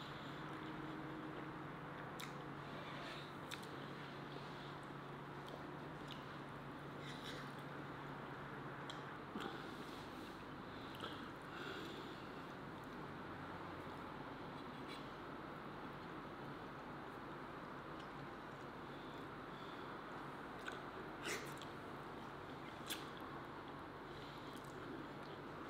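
A middle-aged man chews soft dumplings.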